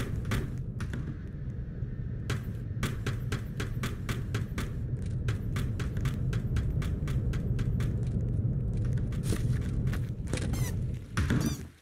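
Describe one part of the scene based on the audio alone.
Quick footsteps tap steadily on a hard floor.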